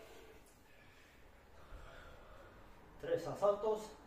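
A kettlebell thuds on the floor.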